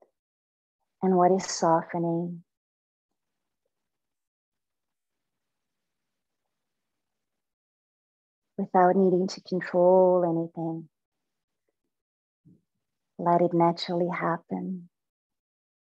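A woman speaks calmly through an online call, in short phrases with long pauses.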